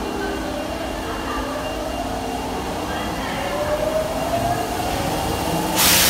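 An electric train motor whines as the train pulls alongside.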